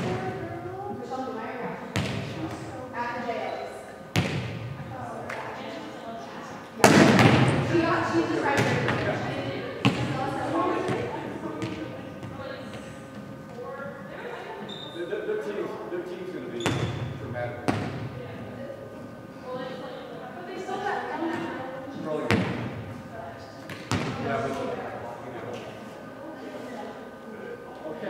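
Young people talk and call out in a large echoing gym.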